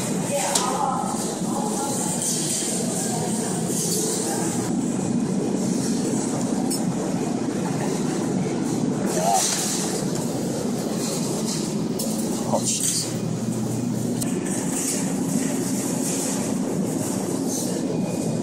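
A claw machine's motor whirs as the claw moves.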